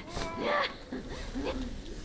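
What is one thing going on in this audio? A swarm of bats flutters its wings.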